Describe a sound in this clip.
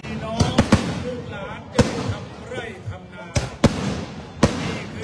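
A man talks excitedly close by.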